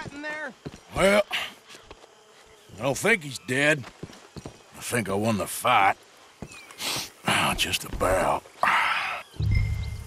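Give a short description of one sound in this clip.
A man answers in a rough, gruff voice.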